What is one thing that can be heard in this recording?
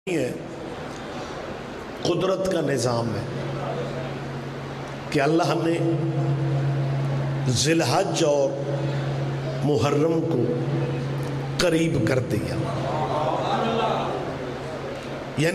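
A middle-aged man speaks with feeling into a microphone, heard through loudspeakers, with long drawn-out sung phrases.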